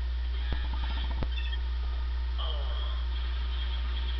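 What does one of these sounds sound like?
An explosion from a video game booms through a television speaker.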